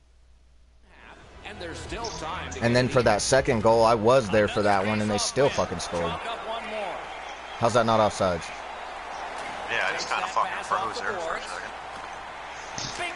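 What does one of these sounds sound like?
A crowd murmurs and roars in a large arena.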